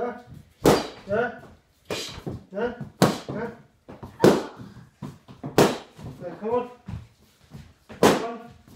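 Hands slap against bodies in sharp smacks.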